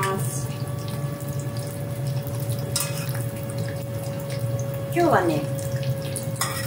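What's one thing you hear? Oil sizzles and crackles steadily as food deep-fries.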